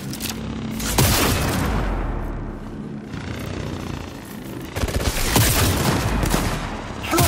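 A rifle fires loud shots that boom and echo.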